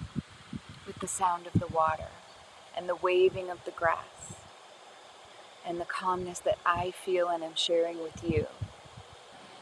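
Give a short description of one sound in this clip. A woman speaks calmly and softly, close to a microphone.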